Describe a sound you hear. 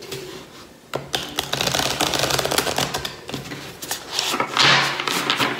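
A deck of cards is shuffled with a steady rustle.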